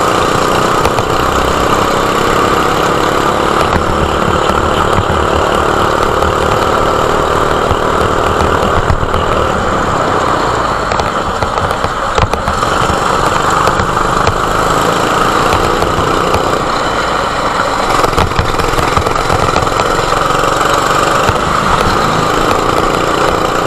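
A go-kart engine buzzes loudly close by, rising and falling as the kart speeds up and slows.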